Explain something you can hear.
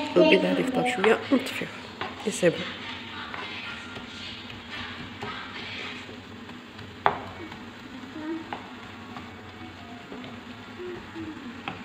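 A wooden spoon scrapes and stirs food in a frying pan.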